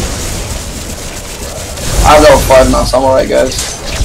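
Energy blasts crackle and whoosh in a fight.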